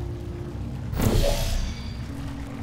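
A sci-fi energy gun fires with a loud crackling whoosh.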